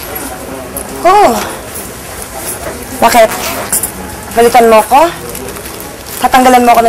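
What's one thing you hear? A woman speaks in a serious tone nearby.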